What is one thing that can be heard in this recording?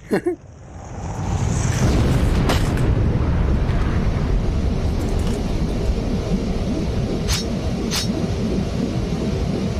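A deep, steady rumbling roar swells up and keeps going.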